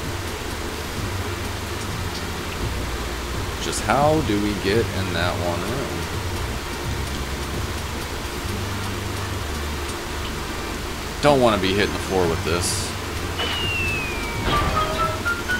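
Electronic game music plays steadily.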